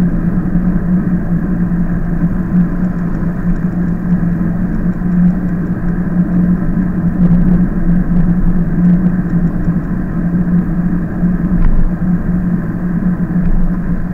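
Wind rumbles steadily against a moving bicycle.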